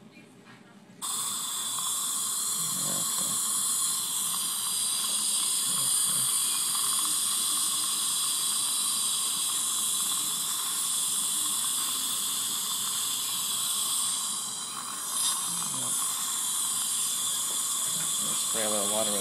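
A dental suction tip hisses and slurps steadily inside a mouth.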